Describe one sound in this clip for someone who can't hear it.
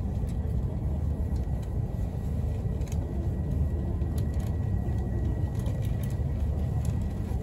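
A train's cabin hums and rumbles steadily as it travels at speed.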